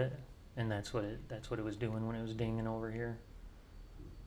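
A man speaks close to a microphone, with animation.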